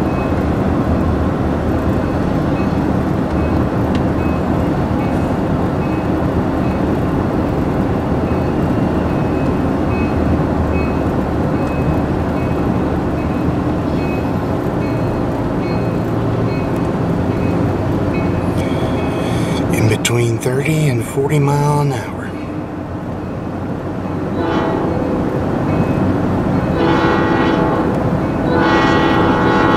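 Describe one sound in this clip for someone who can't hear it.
A car drives along with a steady rumble of tyres and engine, heard from inside.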